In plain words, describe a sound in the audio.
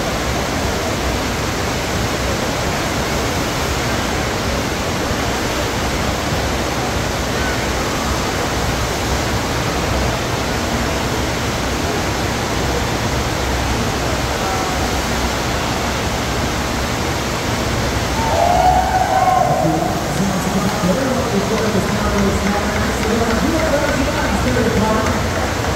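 Rushing water roars steadily in a large echoing hall.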